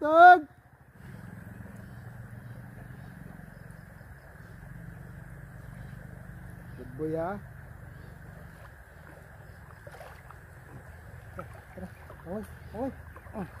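River water laps and splashes softly.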